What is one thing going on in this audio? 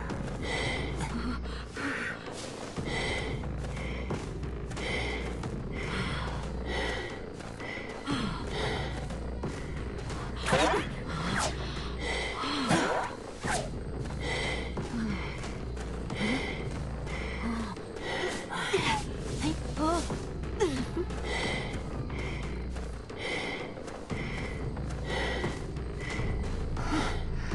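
Footsteps run steadily over soft ground.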